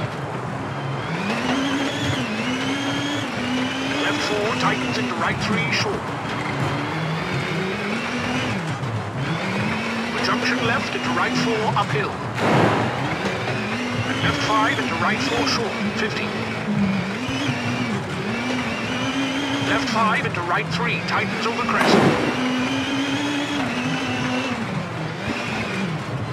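A young man talks with animation through a headset microphone.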